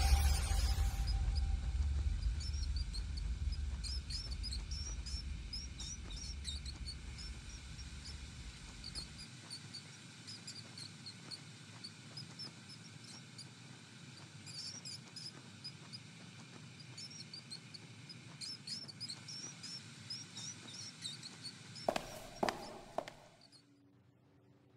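Rats squeak in short high chirps.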